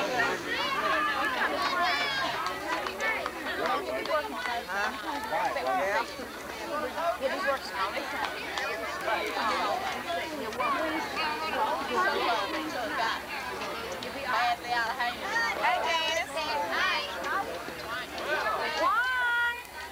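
Several girls and women chatter and call out nearby.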